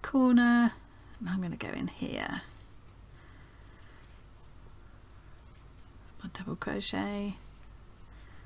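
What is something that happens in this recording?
A woman talks calmly into a close microphone.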